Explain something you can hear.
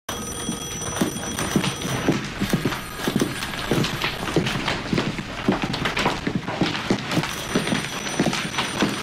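High heels and shoes click on a hard floor as two people walk.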